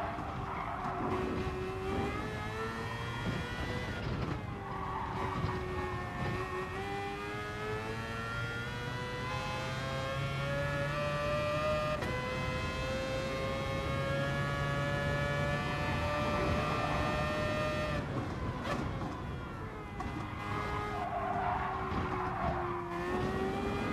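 A racing car engine roars, rising in pitch as it speeds up and dropping as it slows for corners.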